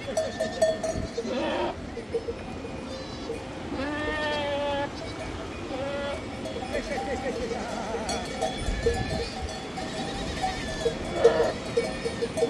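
Many hooves patter and scrape on dry, stony ground.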